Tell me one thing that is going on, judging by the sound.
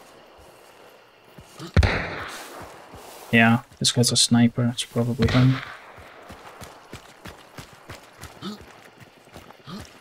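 Footsteps crunch and rustle through grass and undergrowth.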